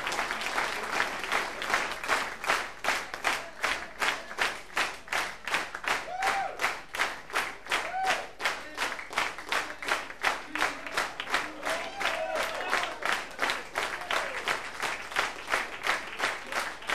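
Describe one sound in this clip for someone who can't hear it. A crowd claps along in a fast, steady rhythm in a large hall.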